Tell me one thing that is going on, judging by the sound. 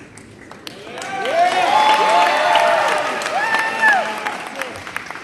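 A crowd of children cheers and yells loudly in a large echoing hall.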